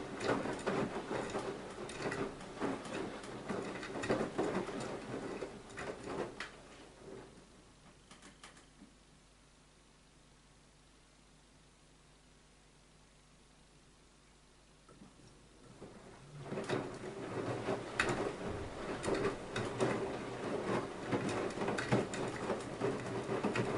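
A washing machine motor hums steadily.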